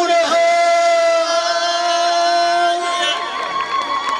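Elderly men sing together through a loudspeaker.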